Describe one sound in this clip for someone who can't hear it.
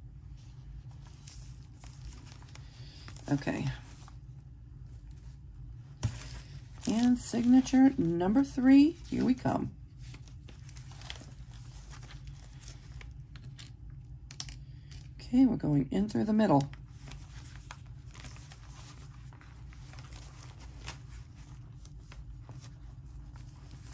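Paper pages rustle and flap as a book is leafed through.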